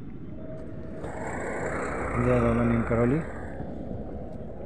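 A motor rickshaw engine rumbles past close by.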